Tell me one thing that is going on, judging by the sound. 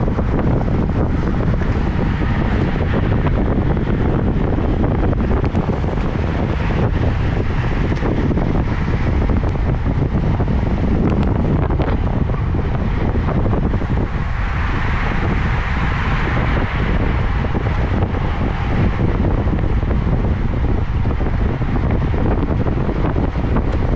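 Bicycle tyres hum on pavement.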